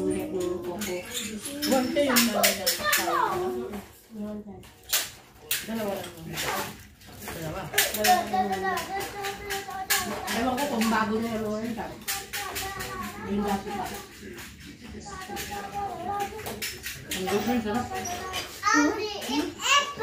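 Women talk and laugh nearby with animation.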